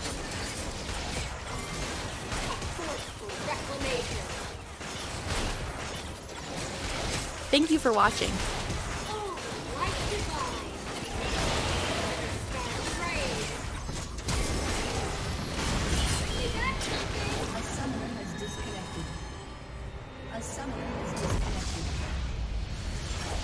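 Fantasy battle sound effects whoosh, crackle and clash during fighting.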